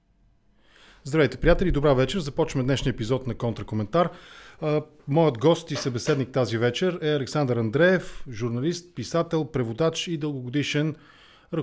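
A man speaks calmly and closely into a microphone.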